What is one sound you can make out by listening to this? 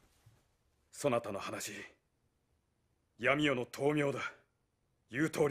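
A young man speaks earnestly nearby.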